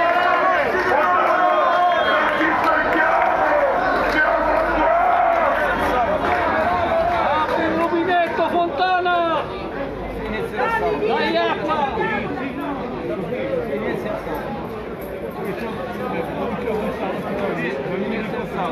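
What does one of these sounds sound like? A crowd of protesters shouts and talks outdoors.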